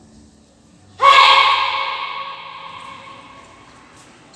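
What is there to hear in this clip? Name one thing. A child lets out a loud, sharp shout that rings out in a large echoing hall.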